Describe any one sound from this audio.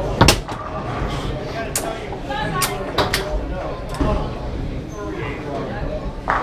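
Foosball rods rattle and clunk as they are spun and slid.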